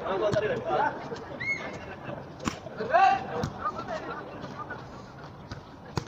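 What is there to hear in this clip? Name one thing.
Young men shout and call out outdoors during a game.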